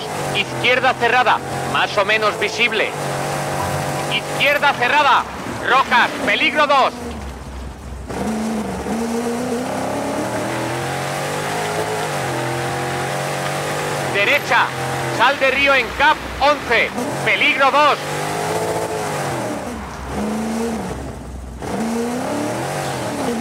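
A rally car engine drones and revs up and down.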